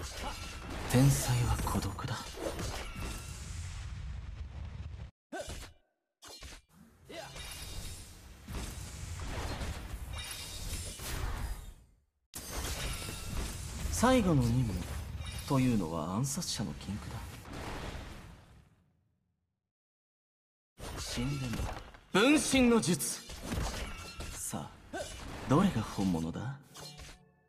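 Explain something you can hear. Game spells whoosh and blast in a fight.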